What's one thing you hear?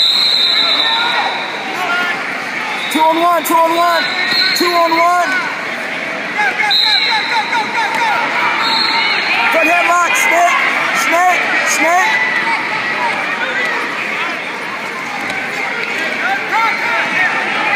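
A crowd of spectators chatters and shouts in a large echoing gym.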